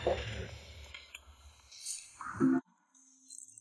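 Tea pours into a cup.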